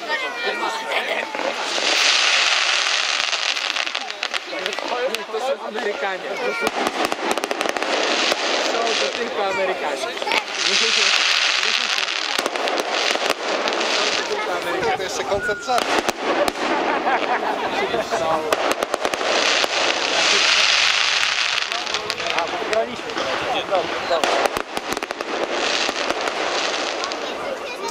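Fireworks crackle and pop in rapid bursts, echoing outdoors.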